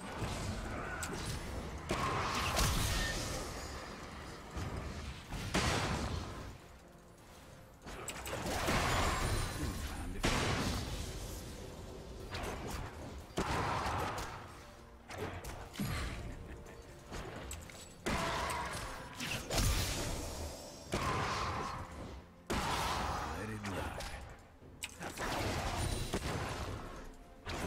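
Fantasy battle effects whoosh and crackle in bursts.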